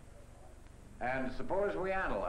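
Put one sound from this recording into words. A man speaks calmly and clearly.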